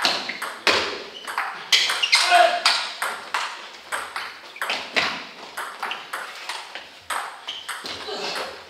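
A ping-pong ball clicks sharply back and forth off paddles and a table in a quick rally.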